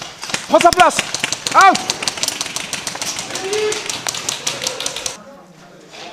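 Rapid bursts of gunfire crack and rattle outdoors.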